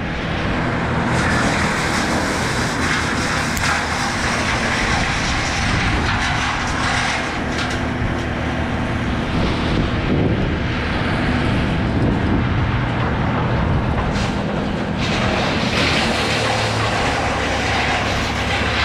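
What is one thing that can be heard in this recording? A climbing rope rustles and scrapes through metal gear.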